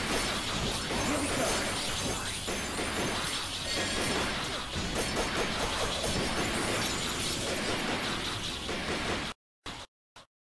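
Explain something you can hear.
Energy blasts and explosions crackle loudly.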